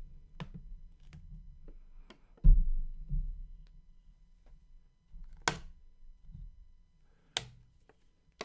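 Soft taps and thumps sound close to a microphone.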